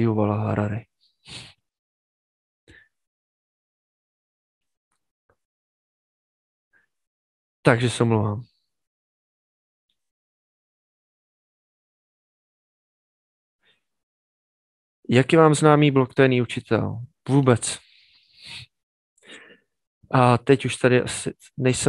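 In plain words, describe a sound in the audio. A man speaks calmly and close into a headset microphone, in short bursts with pauses.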